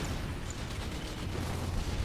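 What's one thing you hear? Tank guns fire with deep booms.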